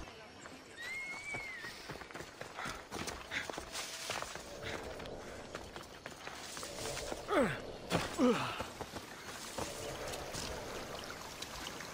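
Footsteps crunch on dry grass and earth.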